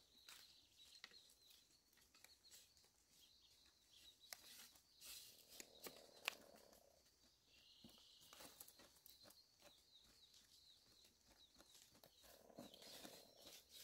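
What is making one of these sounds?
Bamboo sticks knock and clatter against each other.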